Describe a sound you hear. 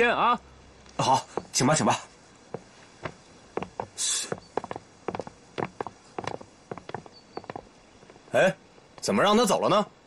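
A young man replies politely nearby.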